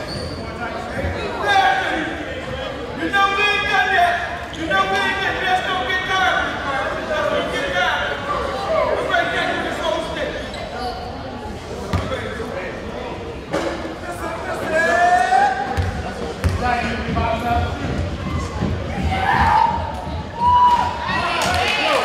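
Many people talk and shout across an echoing gym.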